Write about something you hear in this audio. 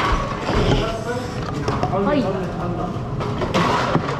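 A plastic cup knocks onto a hard surface.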